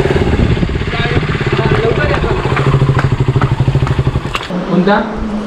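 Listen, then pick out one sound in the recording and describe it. A motorcycle engine idles with a throbbing putter.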